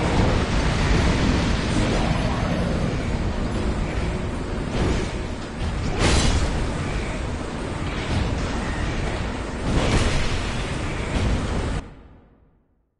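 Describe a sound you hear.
A heavy weapon swooshes and strikes with loud impacts.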